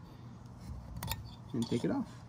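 Small metal parts click softly as they are handled.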